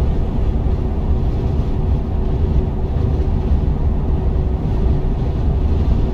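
A truck engine rumbles steadily while driving along a road.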